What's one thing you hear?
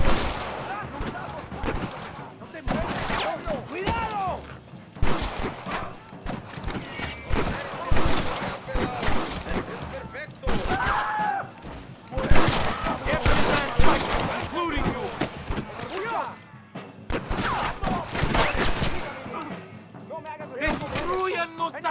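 Gunshots crack repeatedly with a ringing echo.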